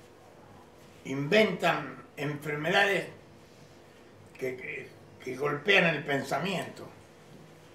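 An elderly man speaks calmly and thoughtfully, close by.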